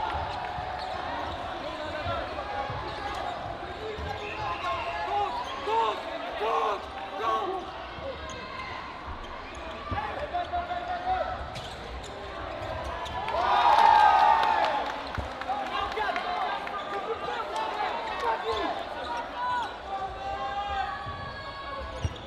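Players' voices call out and echo through a large hall.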